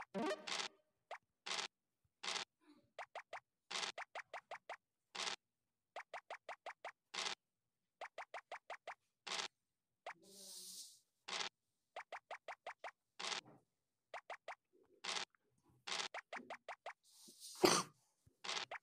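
A digital die rattles as it rolls, over and over.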